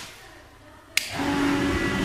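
A wall switch clicks once.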